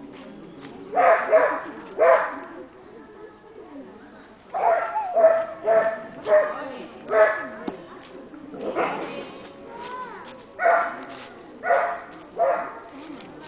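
A small dog barks sharply, again and again.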